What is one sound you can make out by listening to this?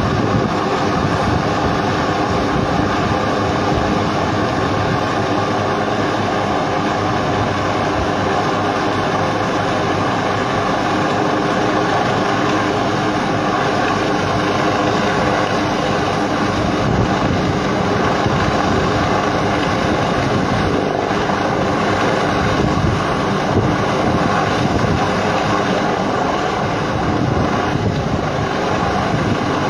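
A helicopter's rotor thumps steadily overhead, loud and close.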